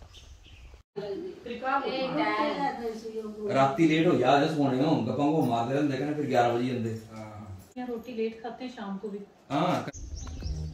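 Several women talk with one another nearby.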